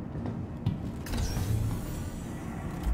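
Sliding doors whoosh shut.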